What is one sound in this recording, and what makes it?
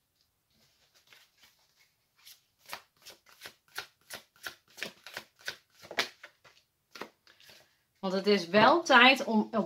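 Playing cards tap and rustle as a deck is handled.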